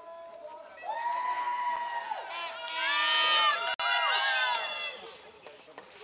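Children and adults shout and cheer loudly.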